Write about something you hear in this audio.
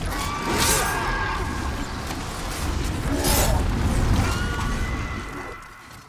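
Swords clash and strike during a fight.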